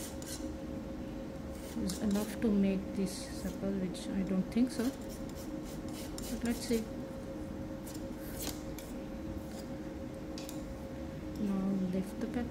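A blade taps and scrapes softly on a hard surface.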